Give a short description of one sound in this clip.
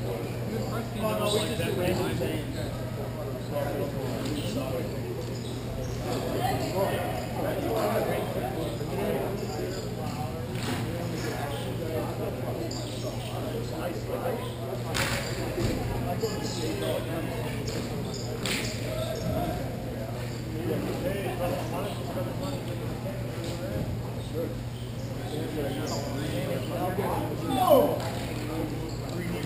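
Skate wheels roll across a large echoing rink.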